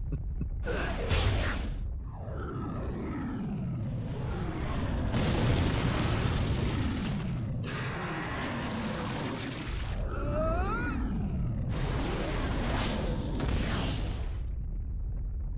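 Explosions roar and rumble.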